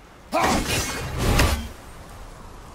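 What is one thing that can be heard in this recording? An axe smashes into something with a loud crack.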